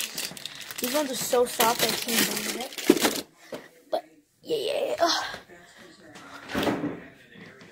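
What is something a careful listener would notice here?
A boy talks excitedly close to a phone's microphone.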